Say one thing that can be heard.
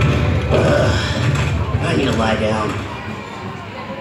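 A man's voice talks loudly through a loudspeaker.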